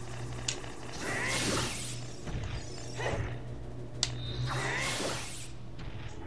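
A sword swings with a loud whooshing spin.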